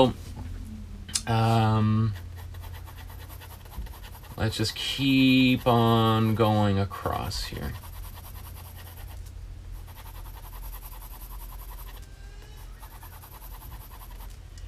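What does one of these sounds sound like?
A pencil softly scratches across paper.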